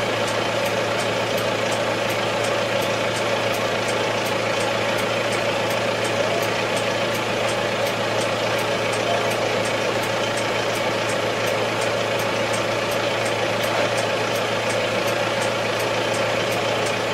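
A tractor engine drones steadily, heard from inside the cab.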